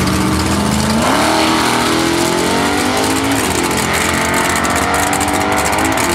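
Race car engines roar and rise in pitch as the cars launch and speed away.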